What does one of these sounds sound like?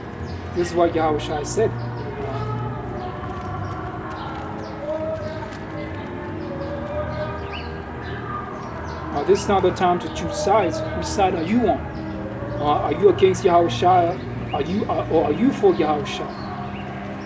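A young man speaks casually, close to the microphone.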